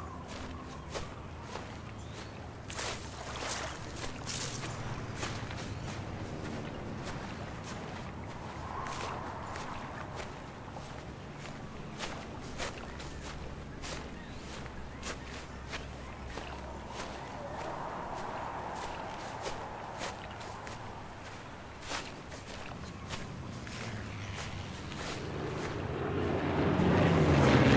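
Footsteps crunch softly on grass and dirt.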